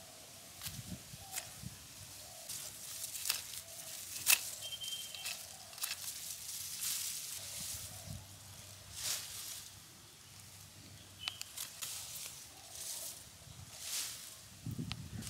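Leafy stalks rustle and snap as a hand pulls them up.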